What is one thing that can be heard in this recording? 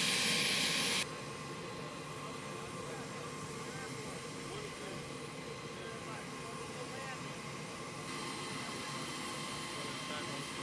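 Men talk calmly together outdoors.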